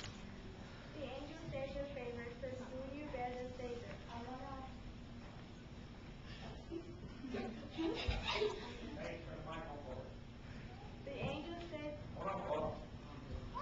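A group of young children sing together in an echoing room.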